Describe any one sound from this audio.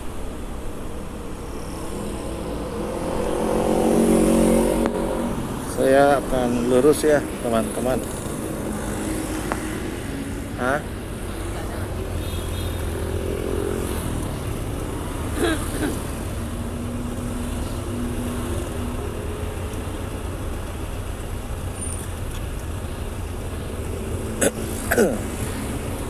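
Motorcycle engines hum and idle close by in busy traffic.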